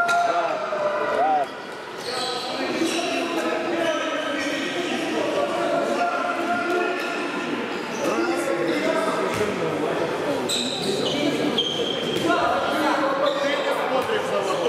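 Sneakers squeak on a sports hall floor during a handball game.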